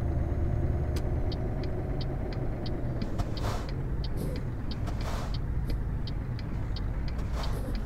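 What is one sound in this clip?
A turn signal ticks rapidly.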